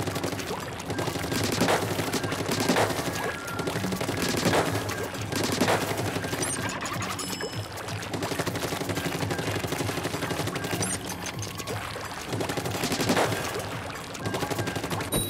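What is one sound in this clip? Upbeat game music plays steadily.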